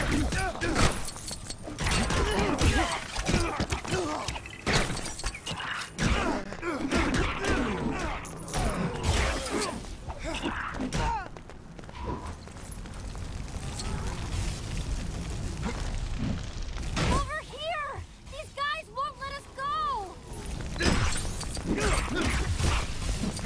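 Energy beams zap.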